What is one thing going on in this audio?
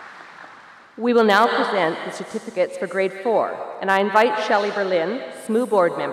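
A woman speaks calmly into a microphone over loudspeakers.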